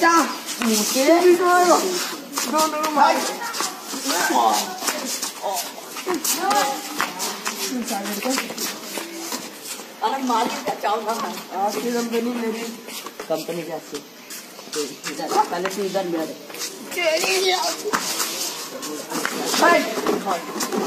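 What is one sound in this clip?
Young men shout and talk excitedly nearby.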